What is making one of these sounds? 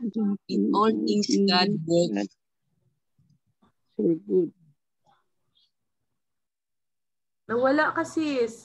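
A middle-aged woman speaks calmly over an online call, pausing between phrases.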